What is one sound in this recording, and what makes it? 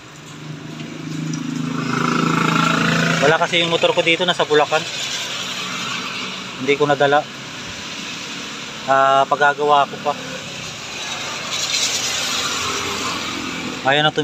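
A motorbike engine hums by.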